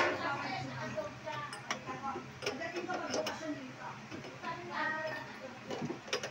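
Plastic pipe fittings click and knock.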